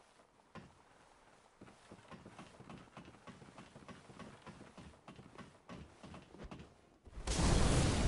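Footsteps clank rhythmically on a metal ladder.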